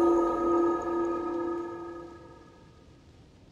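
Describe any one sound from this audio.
A magical portal rings with a bright, steady tone that slowly fades away.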